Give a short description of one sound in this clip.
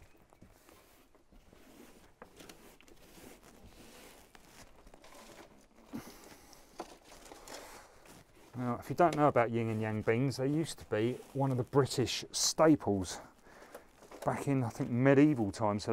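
Hands rustle and pat loose soil.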